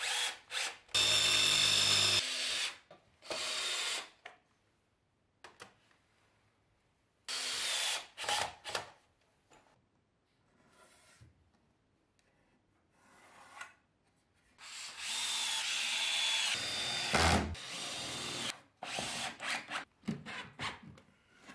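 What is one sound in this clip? A cordless drill drives screws into wood.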